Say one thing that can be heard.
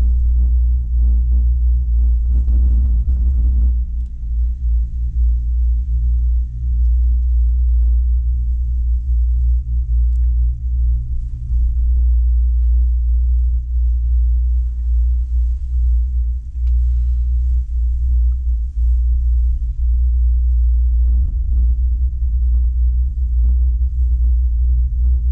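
Strong wind buffets and roars loudly throughout.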